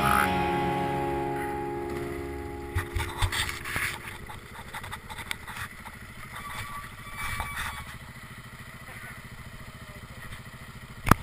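A motorcycle engine revs and then slows to a steady idle.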